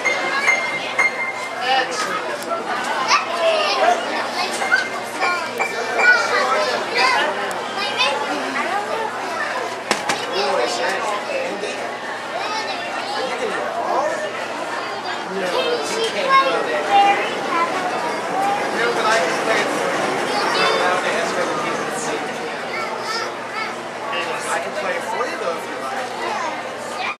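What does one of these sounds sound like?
A man plays a lively tune on a piano.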